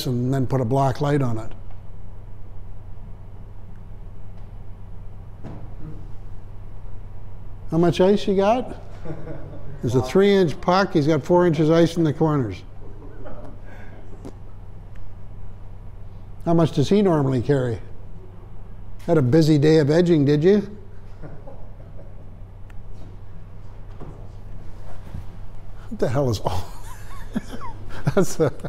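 A man speaks calmly, now and then, in short bursts.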